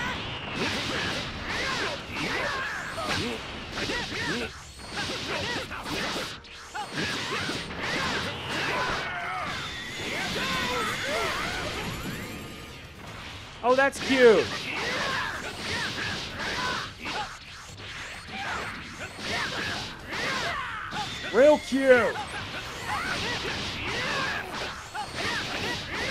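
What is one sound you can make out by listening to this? Punches and energy blasts crash rapidly in a fight.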